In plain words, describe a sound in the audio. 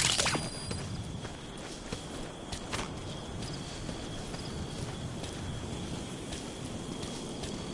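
Footsteps crunch on dry ground and grass.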